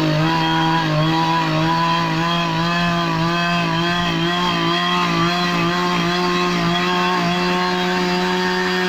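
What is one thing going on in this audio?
A chainsaw cuts through a log.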